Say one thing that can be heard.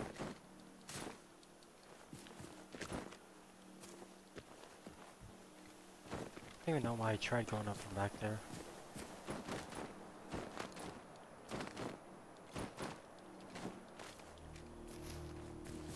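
Footsteps crunch through undergrowth at a steady walking pace.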